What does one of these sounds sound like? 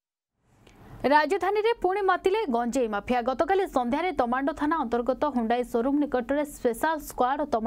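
A young woman reads out calmly, close to a microphone.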